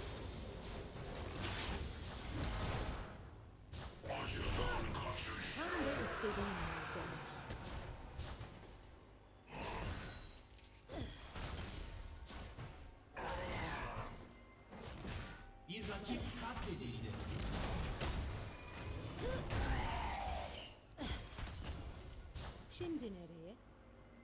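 Game combat effects clash and burst.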